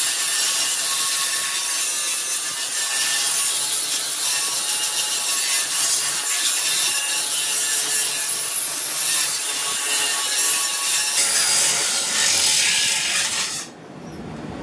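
An angle grinder grinds metal with a loud, high whine.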